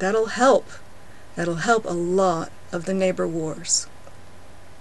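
A woman speaks calmly and close to a microphone, in short phrases.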